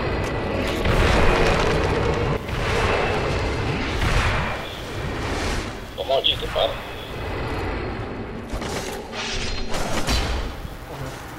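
Magic bursts roar with a loud whooshing blast.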